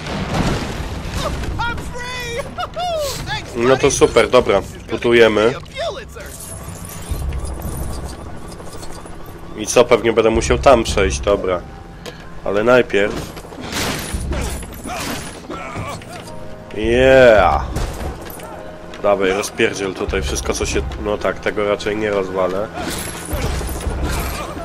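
Game objects smash and clatter with light chiming tones.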